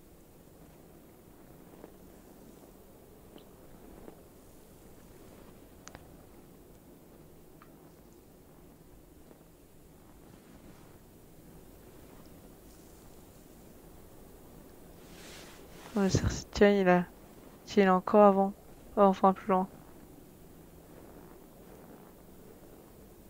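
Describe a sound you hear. Footsteps crunch slowly through deep snow.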